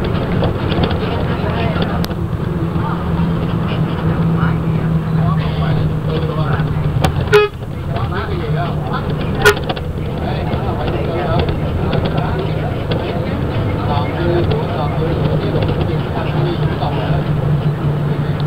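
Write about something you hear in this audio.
Motorbikes buzz past on the road outside.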